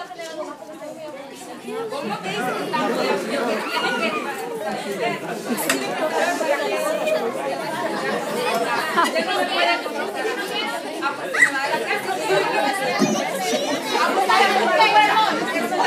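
A woman speaks to a group of children.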